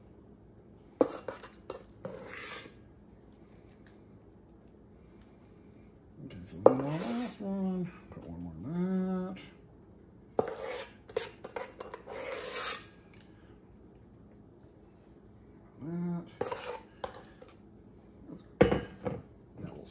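A metal scoop scrapes and clinks against a metal bowl.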